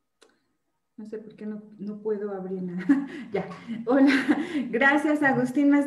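A middle-aged woman laughs over an online call.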